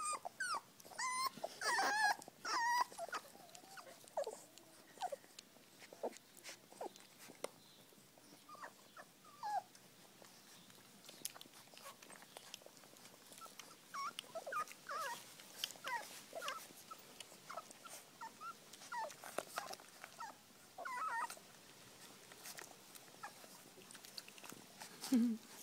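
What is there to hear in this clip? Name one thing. Newborn puppies squeak and whimper while nursing.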